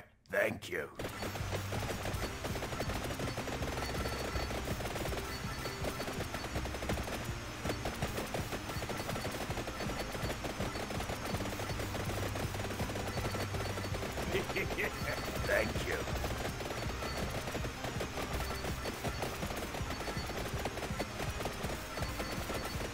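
Rapid video game sound effects of attacks and hits crackle constantly.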